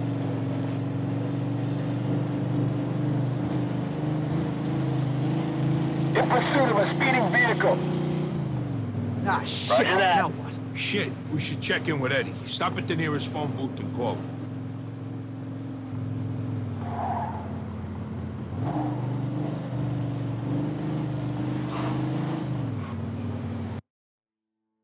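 A car engine hums steadily, dropping in pitch as it shifts gears.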